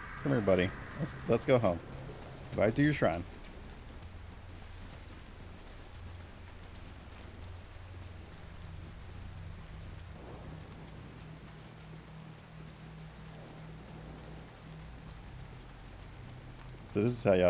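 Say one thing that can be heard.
Rain falls steadily.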